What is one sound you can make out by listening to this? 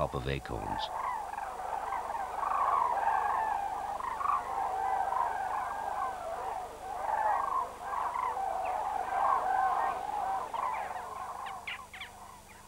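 A flock of cranes calls in flight.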